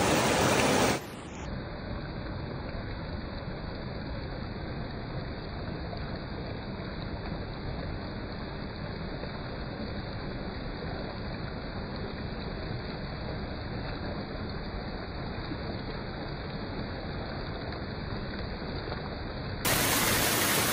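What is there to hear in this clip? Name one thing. A shallow stream gurgles over stones, muffled and close to the water.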